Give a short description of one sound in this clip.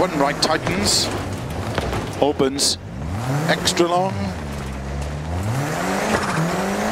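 A rally car engine revs up and down hard.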